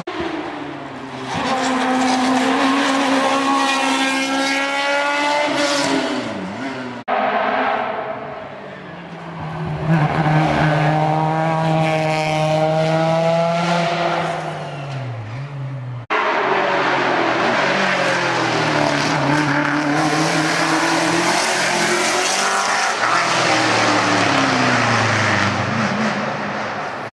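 A racing car engine roars up close, revving hard and shifting gears as the car speeds past.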